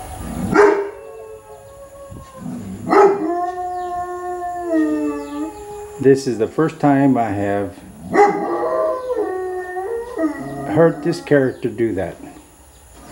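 A dog howls nearby.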